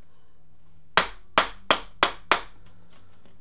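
A mallet taps sharply on metal several times.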